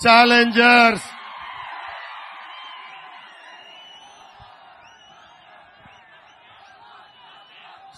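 A large crowd cheers and roars outdoors.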